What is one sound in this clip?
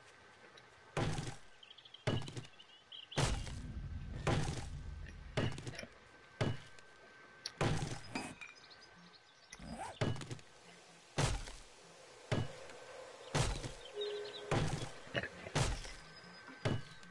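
An axe chops into a tree trunk with repeated dull thuds.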